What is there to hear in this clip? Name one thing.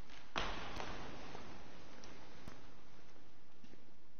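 Footsteps echo in a large, reverberant hall.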